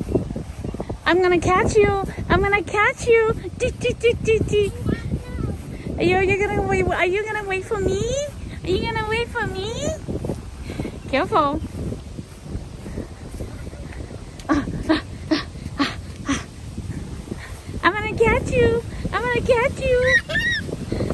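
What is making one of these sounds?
A toddler girl squeals and babbles close by.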